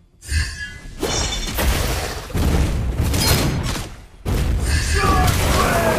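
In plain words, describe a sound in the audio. Game heroes clash with sharp hits and blasts.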